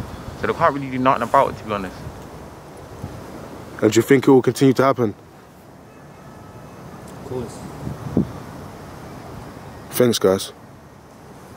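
Young men talk casually nearby, their voices slightly muffled.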